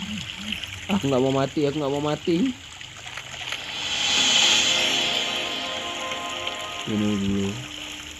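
Water sloshes as a large beast wades through it.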